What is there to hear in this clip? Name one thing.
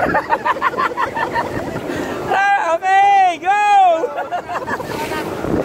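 A group of people shout and cheer with excitement.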